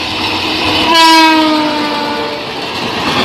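A train horn blares loudly with a falling pitch.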